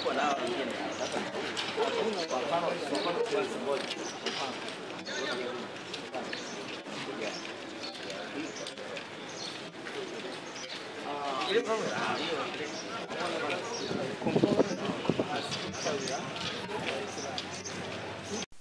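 Several men talk nearby in an open outdoor space.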